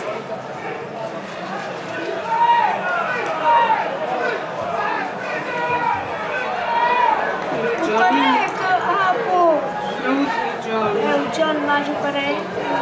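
A crowd of people shouts and chatters outdoors.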